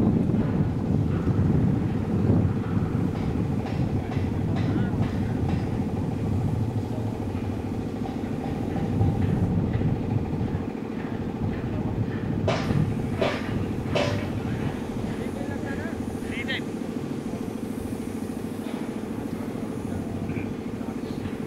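Men talk casually at a distance outdoors.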